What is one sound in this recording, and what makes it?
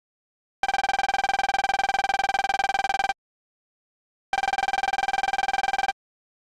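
Rapid high electronic blips chatter in quick succession, pause, then start again.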